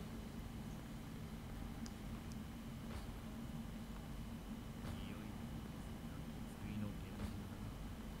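Footsteps tap lightly on a stone floor.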